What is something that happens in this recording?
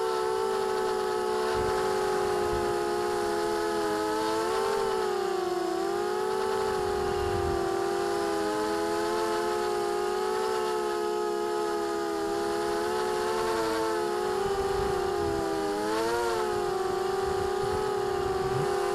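Small drone motors whine steadily close by, their pitch rising and falling a little.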